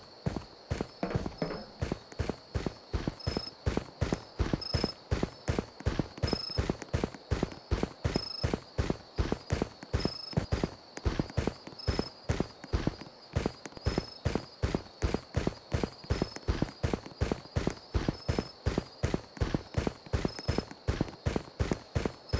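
Quick footsteps thud on grass.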